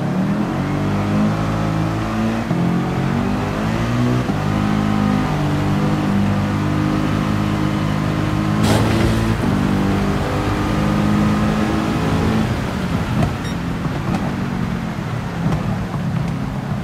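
Tyres hiss on a wet track.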